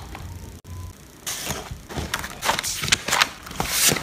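Paper pages flip and rustle.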